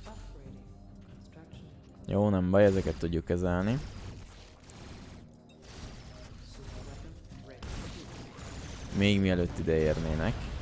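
Gunfire and explosions from a game crackle.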